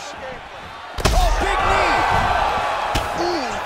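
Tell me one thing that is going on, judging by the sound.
A body slams onto the mat.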